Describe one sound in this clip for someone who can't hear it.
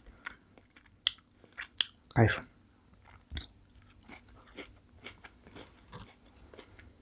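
A woman chews with wet mouth sounds close to a microphone.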